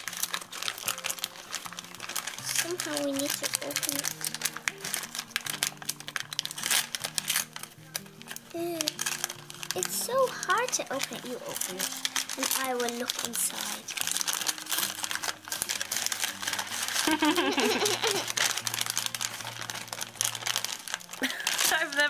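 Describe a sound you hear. A paper bag crinkles and rustles up close.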